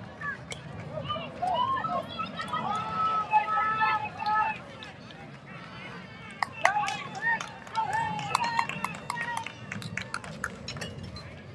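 A crowd of adults and children shouts and cheers at a distance outdoors.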